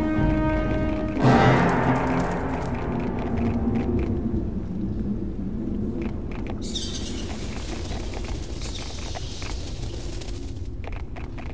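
Footsteps tread on stone in a cave.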